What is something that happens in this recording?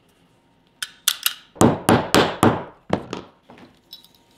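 A hammer taps sharply on a metal punch several times.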